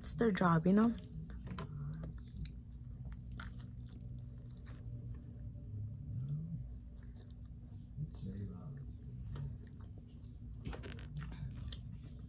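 A young woman chews food with wet, smacking sounds close to a microphone.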